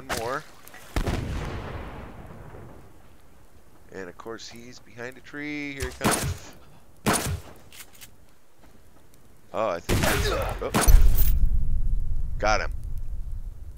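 A rifle fires loud shots that boom and echo away.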